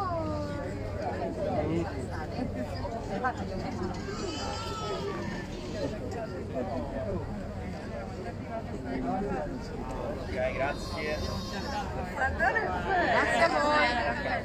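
A woman speaks outdoors.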